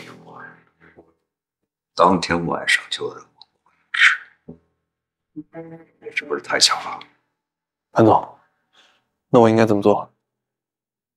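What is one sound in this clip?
A middle-aged man speaks nearby in a firm, serious voice.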